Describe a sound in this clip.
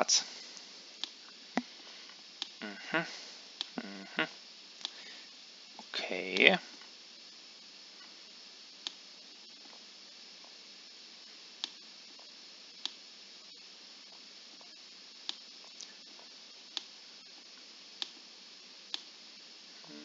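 Short digital clicks sound as chess pieces are moved.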